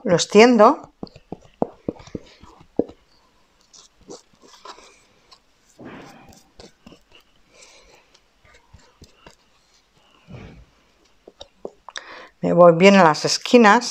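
A brush dabs and scrapes on stiff card.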